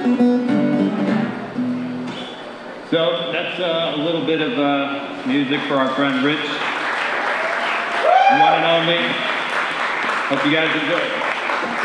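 A man sings into a microphone in a large hall.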